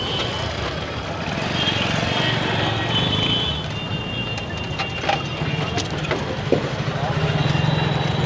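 A motorcycle engine idles nearby.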